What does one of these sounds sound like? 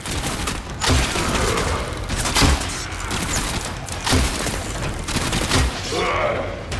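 Heavy weapon blasts boom in quick bursts.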